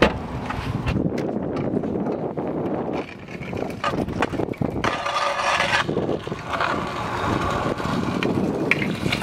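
Scooter wheels roll and rumble over paving stones.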